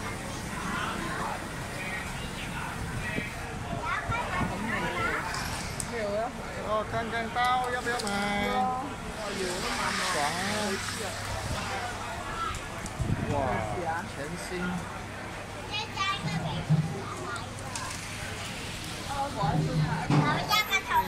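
Adults talk nearby, outdoors.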